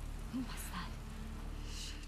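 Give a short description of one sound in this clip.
A young woman asks a question quietly.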